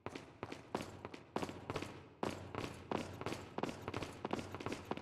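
Footsteps tap on a stone floor in a large echoing hall.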